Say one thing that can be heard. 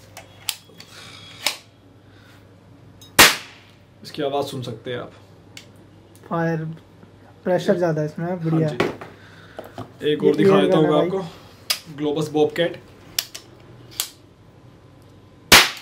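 A toy pistol clicks and clacks as it is handled.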